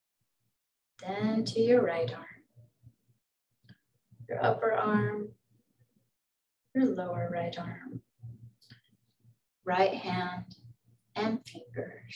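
A woman speaks calmly in pauses, heard through a microphone.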